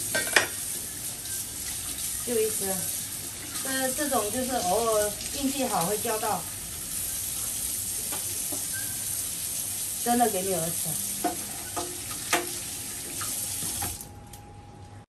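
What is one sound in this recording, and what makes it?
Water runs from a tap and splashes steadily.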